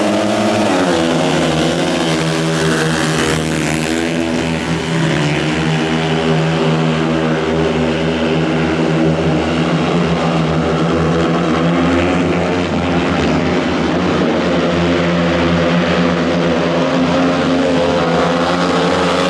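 Racing motorcycles roar steadily as they speed past.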